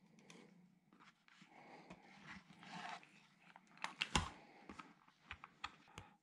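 A plastic meter knocks against a table as hands pick it up.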